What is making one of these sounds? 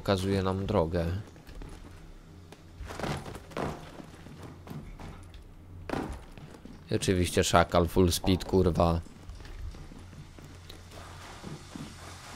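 Footsteps scuff on a hard floor.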